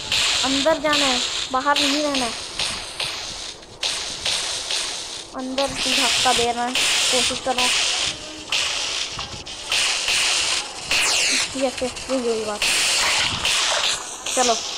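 A toy blaster sprays with a loud, hissing rush in repeated bursts.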